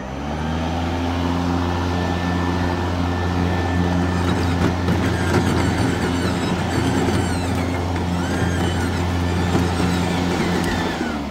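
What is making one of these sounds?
Grass swishes as a mower's blade cuts it.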